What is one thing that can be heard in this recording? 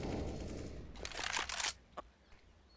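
A rifle is drawn with a metallic clatter.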